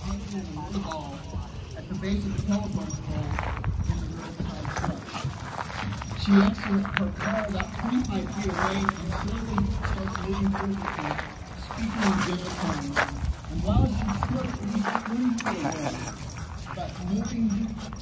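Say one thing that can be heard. Dogs growl and yip playfully while wrestling.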